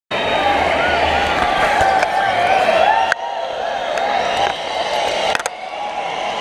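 A large crowd cheers loudly in a vast echoing arena.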